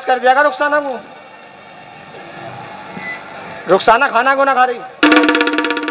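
A man speaks with animation through a microphone over a loudspeaker.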